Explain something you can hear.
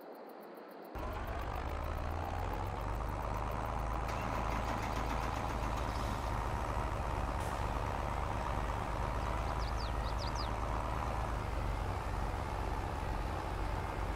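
A tractor engine drones steadily while pulling a planter.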